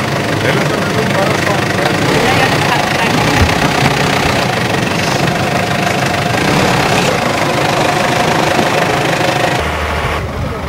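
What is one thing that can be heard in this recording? A car engine rumbles as a vehicle crawls over rough ground.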